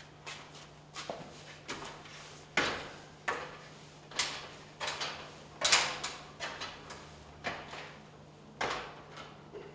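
Footsteps clank on ladder rungs as a man climbs.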